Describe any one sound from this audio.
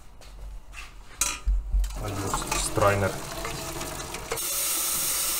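Pasta water pours and splashes into a metal colander.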